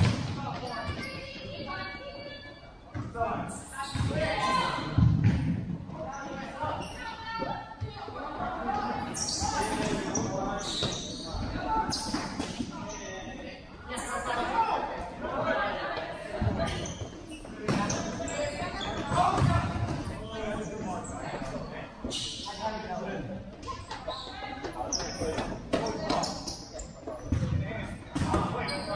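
Boys shout and call out to each other in a large echoing hall.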